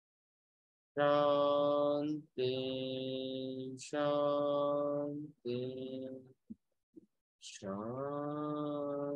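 A man chants in a slow, drawn-out voice close to a microphone.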